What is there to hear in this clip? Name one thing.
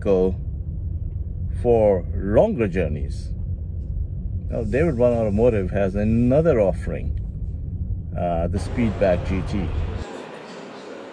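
A car's engine hums low and steadily inside the cabin.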